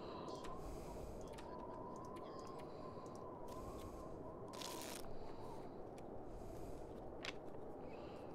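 Soft interface clicks sound as menu options are chosen.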